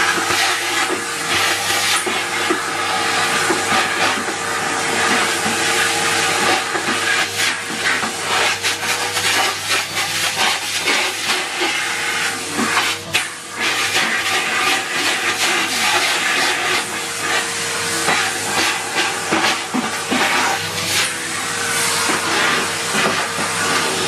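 A plastic bucket knocks and rattles as it is handled.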